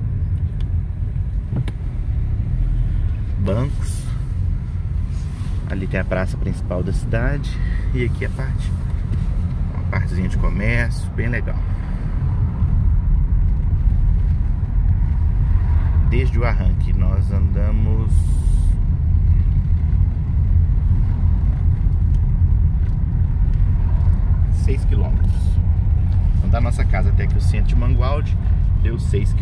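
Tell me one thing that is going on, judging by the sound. A car engine hums low and steady from inside the car, growing louder partway through.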